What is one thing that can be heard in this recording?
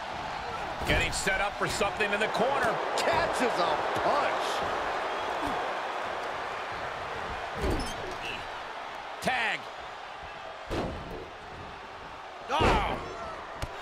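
Punches and body slams land with heavy thuds.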